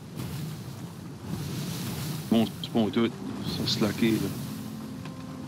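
Wind blows over open water.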